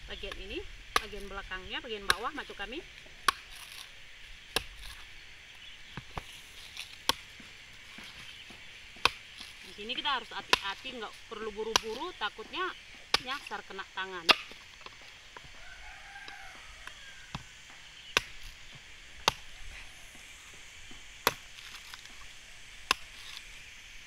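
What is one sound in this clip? A blade chops sharply into a coconut husk.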